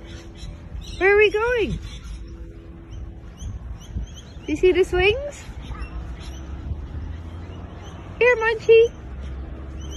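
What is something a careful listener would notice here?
A young girl calls out in a high, sing-song voice nearby, outdoors.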